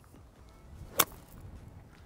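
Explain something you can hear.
A golf club strikes a ball with a sharp crisp click.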